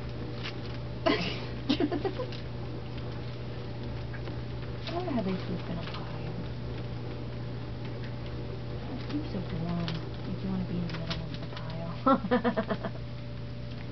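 Puppies whimper and squeak close by.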